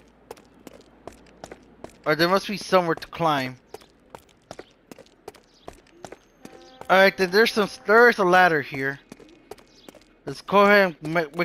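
Footsteps tap at a brisk pace on a hard surface.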